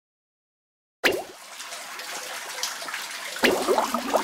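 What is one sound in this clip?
Liquid gushes and splashes through pipes.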